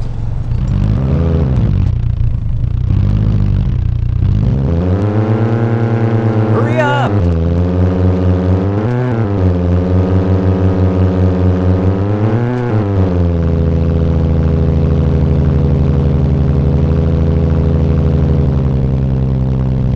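A simulated car engine revs up and shifts through the gears.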